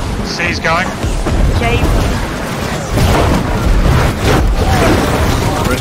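Magical blasts whoosh and crackle in a chaotic battle.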